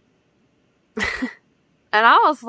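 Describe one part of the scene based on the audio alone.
A young woman laughs close up.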